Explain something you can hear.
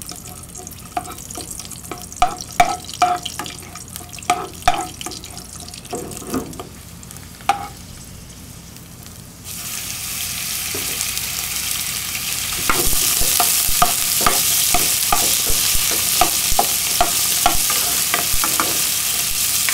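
A spatula knocks and scrapes against a pan.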